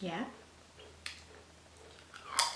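A young woman bites into a crunchy tortilla chip.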